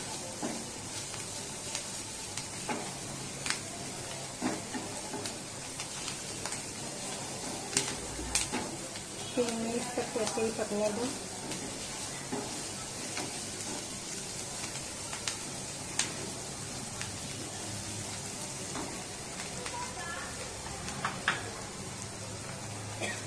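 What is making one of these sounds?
Vegetables sizzle quietly in a hot pan.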